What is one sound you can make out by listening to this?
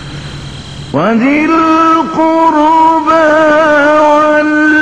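An elderly man chants in a long, wavering singing voice through a microphone, in an echoing hall.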